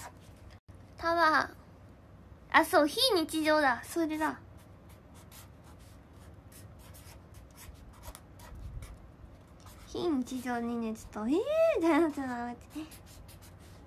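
A young woman speaks close by, in an animated and playful voice.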